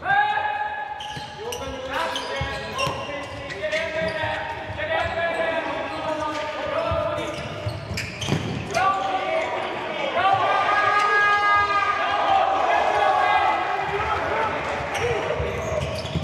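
A ball is kicked with sharp thuds in an echoing hall.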